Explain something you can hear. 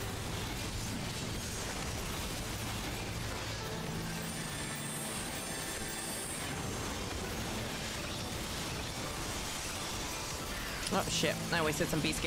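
Fantasy battle sound effects crash and burst rapidly.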